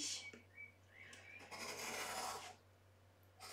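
A blade scrapes as it cuts through cardboard.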